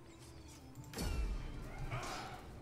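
A low whooshing thump sounds.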